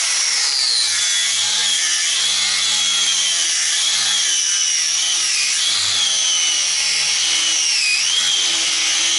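An angle grinder whines loudly as it grinds metal, its pitch dipping under load.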